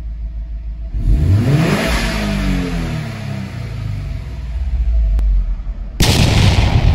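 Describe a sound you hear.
A car engine revs up loudly and winds back down.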